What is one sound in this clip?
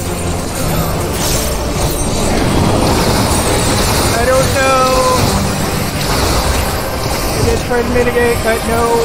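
Magic blasts and whooshes roar from a video game battle.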